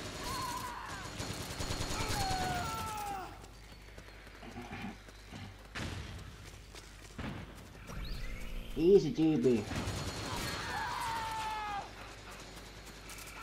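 A young man talks into a headset microphone in bursts, with animation.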